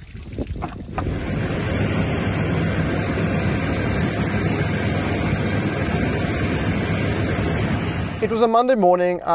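A small plane's engine drones steadily.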